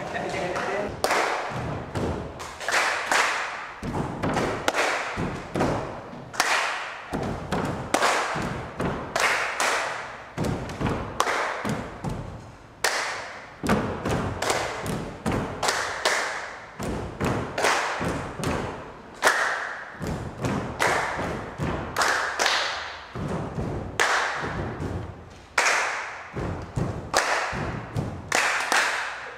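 A man claps his hands in a steady rhythm, ringing in an echoing room.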